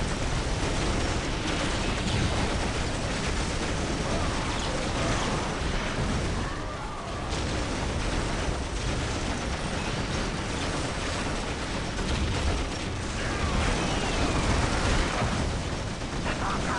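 Guns fire in rapid bursts amid a loud battle.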